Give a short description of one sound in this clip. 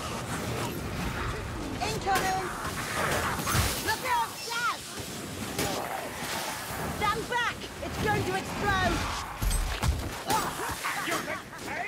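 A blade swings and slashes through the air.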